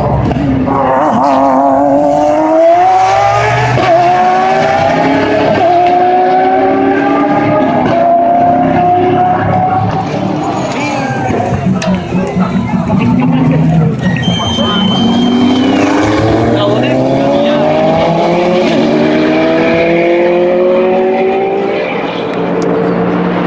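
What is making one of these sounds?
Racing car engines scream past, rising and falling in pitch as they shift gears.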